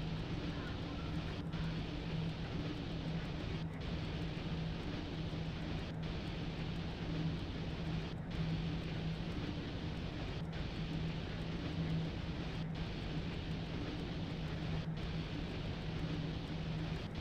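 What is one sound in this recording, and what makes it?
Train wheels rumble along the rails.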